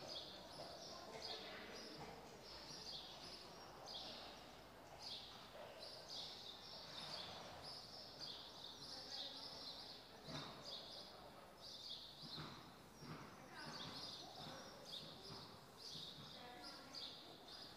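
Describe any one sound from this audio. A horse's hooves thud softly on sand in a large echoing hall.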